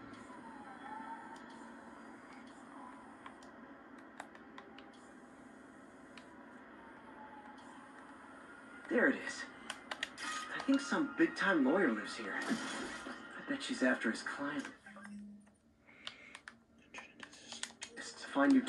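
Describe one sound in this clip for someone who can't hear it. Electronic game sounds play through a small speaker.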